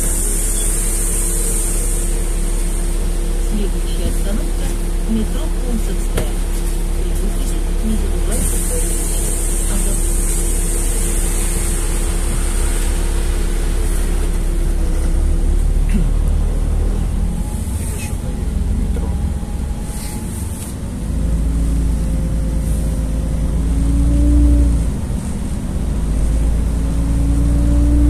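A bus engine hums and rumbles steadily from inside.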